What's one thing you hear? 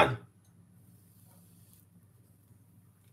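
Food sizzles faintly as it drops into hot oil.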